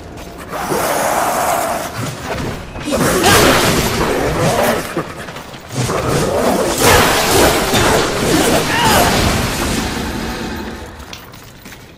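A whip lashes and strikes creatures with sharp impacts.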